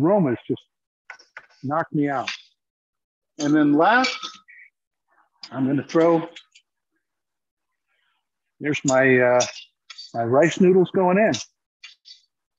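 A middle-aged man talks calmly, heard through an online call.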